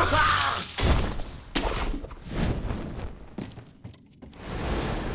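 Footsteps run across wooden floorboards.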